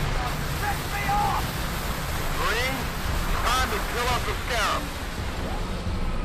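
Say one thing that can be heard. Alien creatures screech and squeal.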